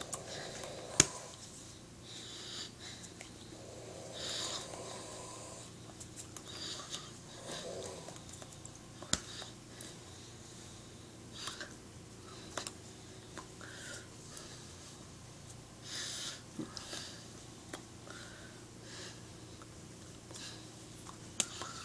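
A woman's hands slap and clap together sharply now and then.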